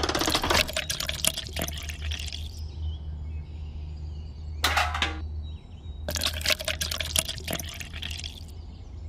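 Wet concrete slops out of a small bucket.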